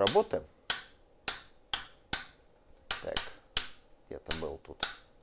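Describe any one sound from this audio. A rotary switch clicks sharply as a hand turns it step by step.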